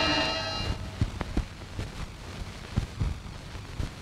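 Footsteps cross a floor indoors.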